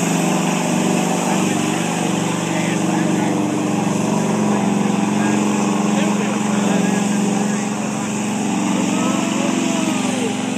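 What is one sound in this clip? A crowd of spectators talks and cheers nearby outdoors.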